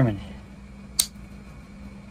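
A pocketknife blade snaps shut with a click.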